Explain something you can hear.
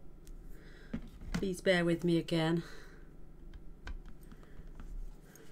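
A plastic block clicks down onto card.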